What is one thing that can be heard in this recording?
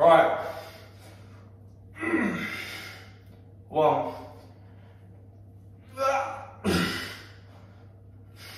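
A young man speaks loudly in short bursts close by, in a slightly echoing room.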